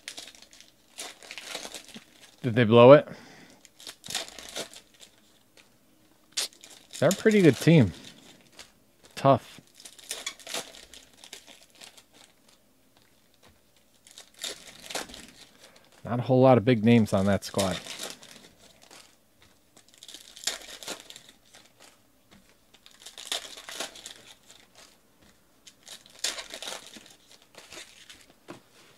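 Foil packs crinkle and tear as hands open them.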